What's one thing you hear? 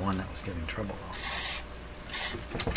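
A spray can hisses briefly.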